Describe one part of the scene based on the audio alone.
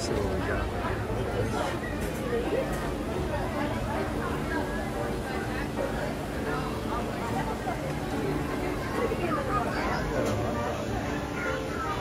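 Men and women chatter in a busy crowd nearby.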